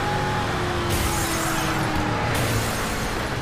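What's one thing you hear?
A heavy truck crashes through a roadblock with a bang.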